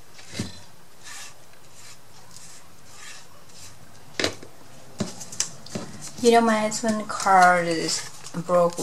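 Cardboard pieces tap and rustle against a tabletop.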